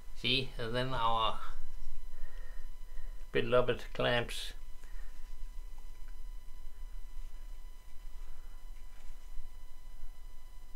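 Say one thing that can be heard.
A small plastic spring clamp clicks as it is squeezed open and released.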